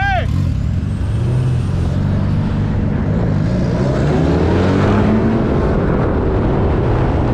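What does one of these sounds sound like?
A car engine revs hard, its pitch rising and falling.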